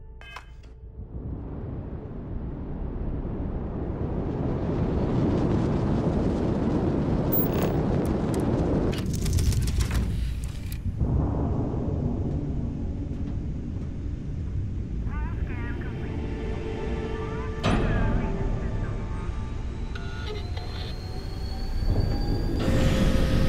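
A spaceship engine roars with a deep, steady rumble.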